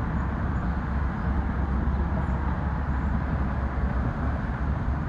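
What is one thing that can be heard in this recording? Wind blows steadily outdoors, rumbling against the microphone.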